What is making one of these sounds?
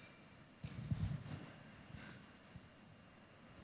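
Clothing rustles softly against a close microphone.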